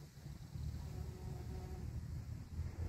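A bumblebee buzzes softly close by.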